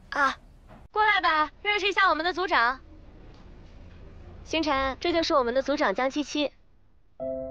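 A woman speaks with animation, introducing someone.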